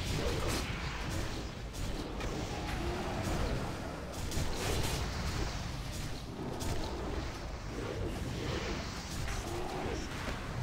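Spell effects crackle and burst in a fantasy battle.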